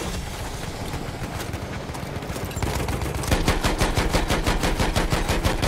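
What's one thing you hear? Shell explosions boom in the distance.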